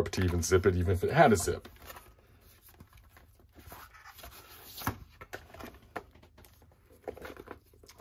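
A plastic sleeve crinkles as hands pull it open.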